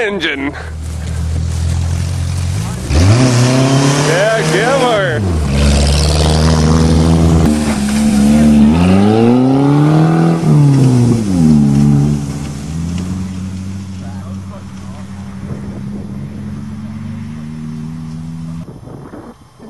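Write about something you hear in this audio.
A car engine revs loudly and rises and falls in pitch.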